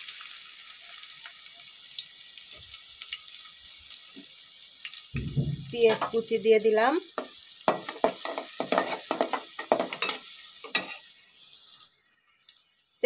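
Water sizzles and bubbles in a pot.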